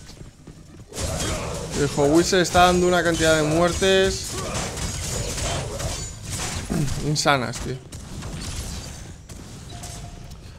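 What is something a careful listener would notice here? Weapons clash and magic blasts crackle in a video game fight.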